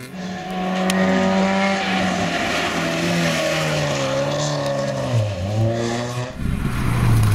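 A rally car engine roars close by, revving and shifting through gears.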